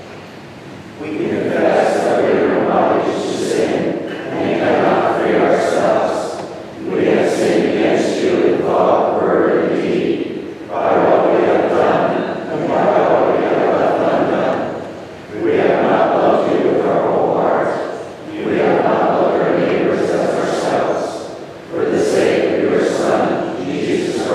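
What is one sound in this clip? A congregation sings a hymn together in an echoing hall.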